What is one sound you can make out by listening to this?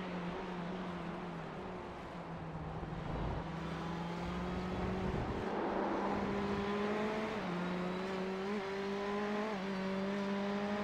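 A race car engine hums steadily and shifts pitch through the gears.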